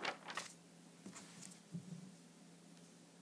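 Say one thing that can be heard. A young girl speaks softly close by.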